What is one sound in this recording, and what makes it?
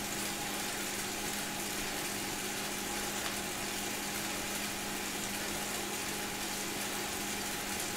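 A bike trainer whirs steadily under fast pedalling.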